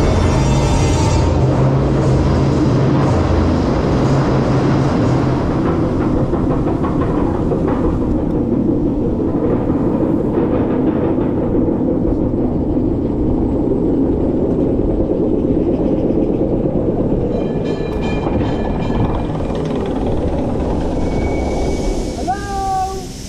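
A roller coaster chain lift clanks and rumbles steadily as the car climbs.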